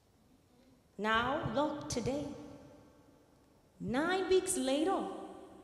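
A woman sings into a microphone in a large echoing hall.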